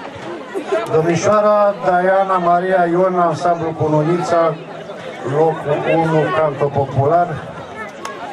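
An elderly man speaks calmly into a microphone over a loudspeaker outdoors.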